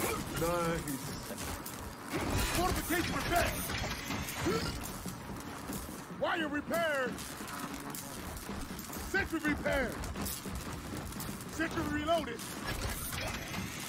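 Automatic gunfire rattles in bursts.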